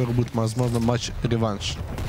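A heavy gun fires a loud blast.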